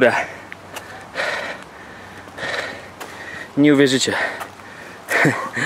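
Footsteps scuff on pavement.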